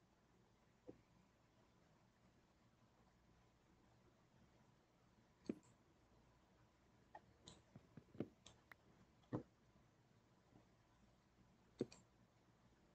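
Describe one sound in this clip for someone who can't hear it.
Wooden blocks are set down with short, soft knocks.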